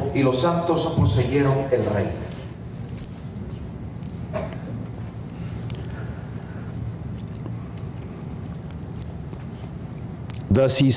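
A man speaks through a microphone and loudspeakers in a large room.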